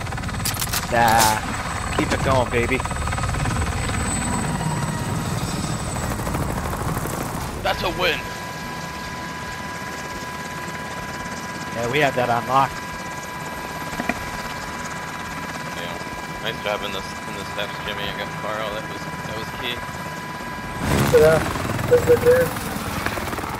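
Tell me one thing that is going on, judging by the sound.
A helicopter's rotor thumps and roars steadily overhead.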